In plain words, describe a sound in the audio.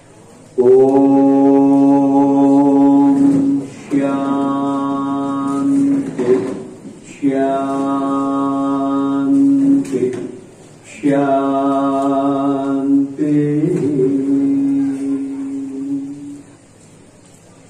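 An elderly man sings long, drawn-out notes through a microphone and loudspeakers.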